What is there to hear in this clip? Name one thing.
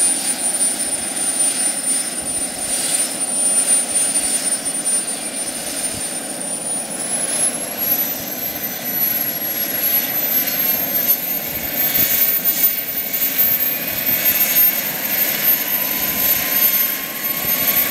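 A model helicopter's engine whines steadily close by, rising in pitch.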